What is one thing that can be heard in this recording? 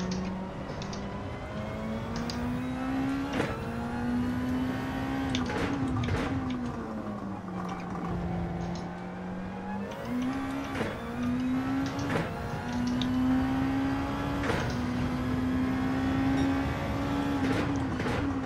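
A racing car engine revs up and down hard, with quick gear shifts.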